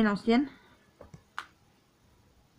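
Cardboard packaging rustles in hands.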